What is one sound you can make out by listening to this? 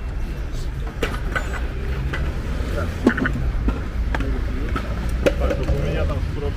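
Inline skate wheels roll and clatter on pavement.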